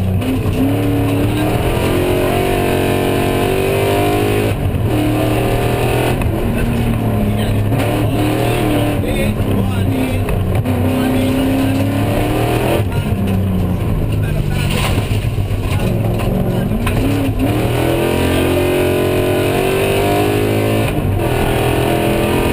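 A car engine roars loudly, revving up and down through quick gear changes.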